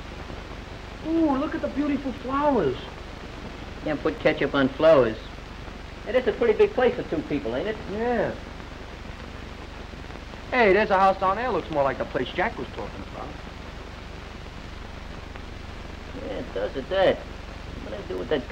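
A boy speaks with feeling, close by.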